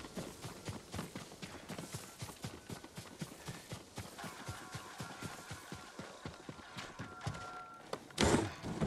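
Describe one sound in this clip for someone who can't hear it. Footsteps run quickly over soft ground.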